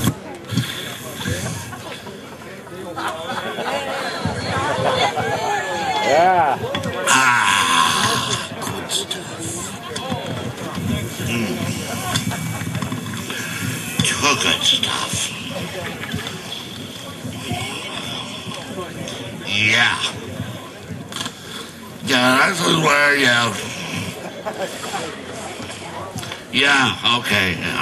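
A man speaks loudly and with animation to an outdoor crowd.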